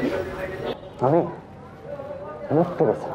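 A young woman answers briefly nearby.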